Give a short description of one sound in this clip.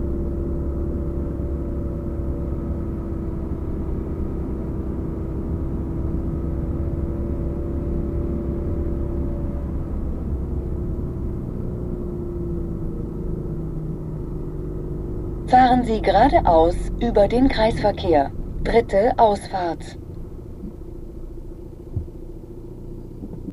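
A car engine hums steadily as the car drives slowly along a road, fading as it slows down.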